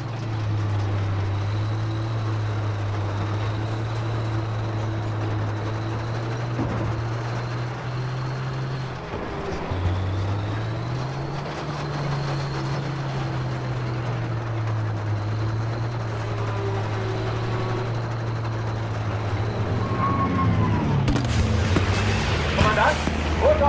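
A tank engine rumbles steadily as the tank rolls along.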